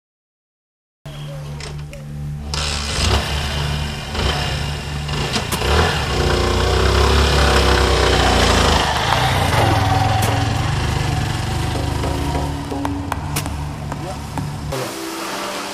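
A motorcycle engine runs and pulls away.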